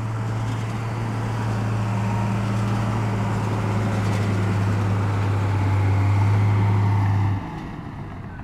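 A truck engine rumbles steadily nearby.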